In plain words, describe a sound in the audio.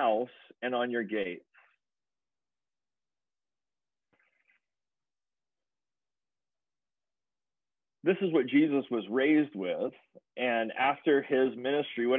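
A man speaks calmly over an online call, pausing at times.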